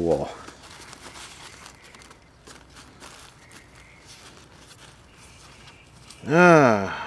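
Paper rustles and crinkles against plastic wrap as it is handled.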